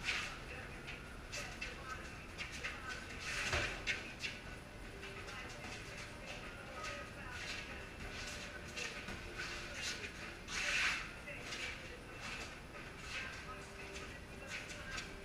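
Sneakers squeak and shuffle on a concrete floor.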